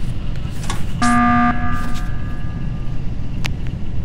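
An alarm blares in a short burst.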